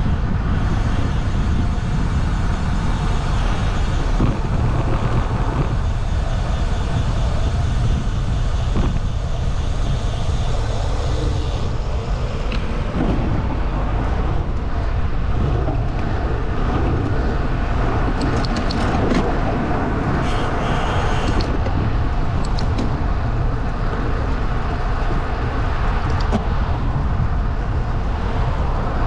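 Small wheels roll steadily over asphalt.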